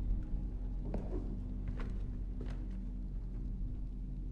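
A door clicks and swings open.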